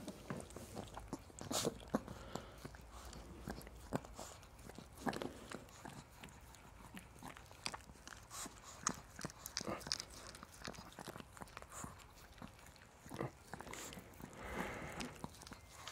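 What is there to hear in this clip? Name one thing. A small dog licks a face with wet smacking sounds.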